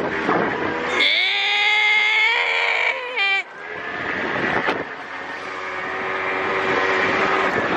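A young man shouts playfully close by.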